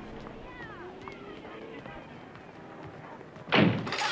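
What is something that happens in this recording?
A door closes softly.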